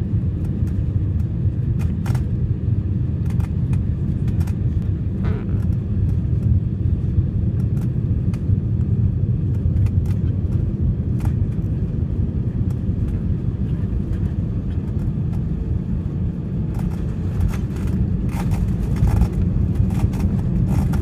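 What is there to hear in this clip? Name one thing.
A jet plane's engines roar steadily, heard from inside the cabin.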